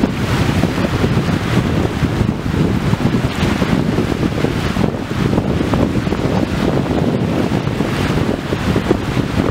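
Small waves wash and lap against a shore.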